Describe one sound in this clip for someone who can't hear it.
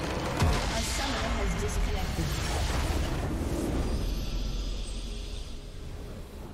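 A large blast booms and rumbles, then slowly fades.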